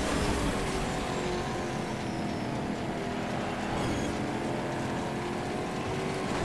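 A racing engine roars steadily at high speed.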